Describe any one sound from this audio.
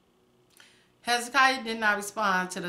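A middle-aged woman speaks close to a microphone with animation.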